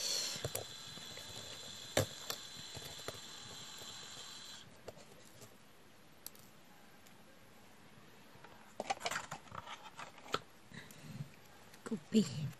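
A plastic tool taps and clicks softly on small beads.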